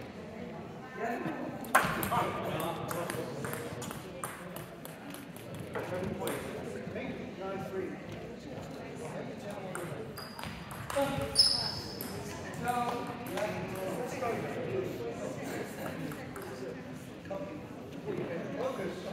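A table tennis ball clicks back and forth across a table in an echoing hall.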